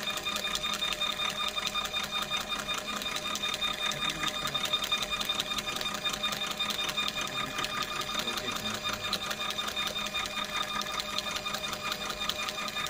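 A label printer whirs and clicks rapidly as it feeds out labels.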